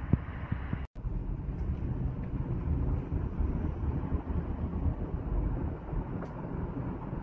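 A freight train rolls past with a steady rumble.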